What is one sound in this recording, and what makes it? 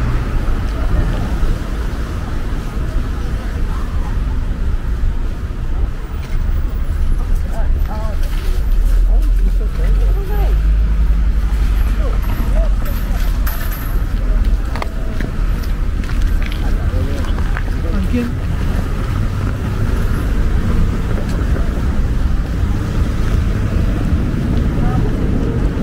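Footsteps crunch on snow and slush.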